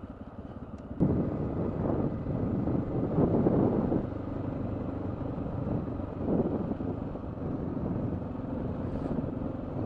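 Wind buffets and rumbles loudly.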